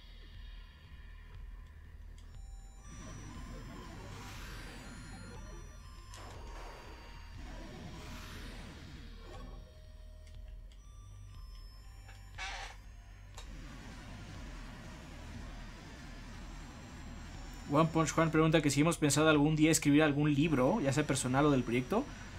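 Retro video game music and beeps play steadily.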